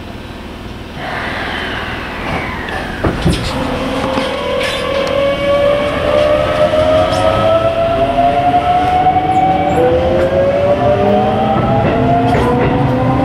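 Train wheels rumble and clatter on the rails.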